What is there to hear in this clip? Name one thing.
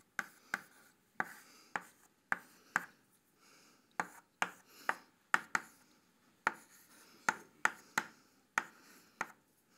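Chalk taps and scrapes sharply on a board.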